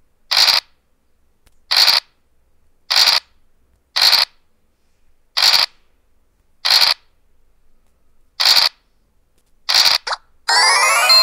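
Dice rattle briefly as they roll, again and again.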